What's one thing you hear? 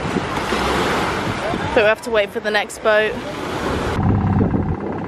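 Small waves wash onto a sandy shore.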